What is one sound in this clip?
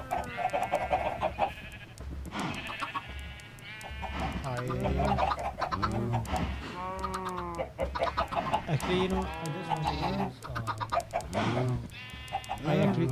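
Chickens cluck repeatedly.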